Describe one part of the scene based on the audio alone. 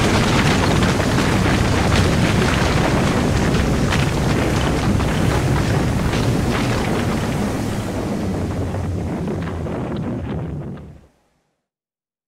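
A huge explosion rumbles deeply and roars on, slowly fading.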